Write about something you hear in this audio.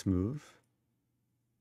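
A young man speaks briefly and calmly into a nearby microphone.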